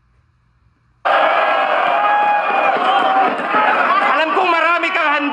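A recorded young man raps loudly into a microphone, played back through a speaker.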